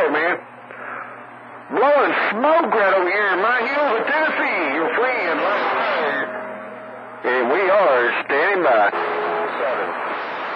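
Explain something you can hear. A radio receiver gives out warbling, wavering tones.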